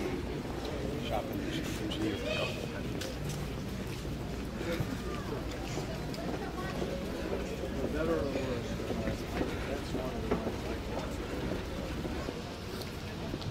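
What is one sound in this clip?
City traffic hums in the background.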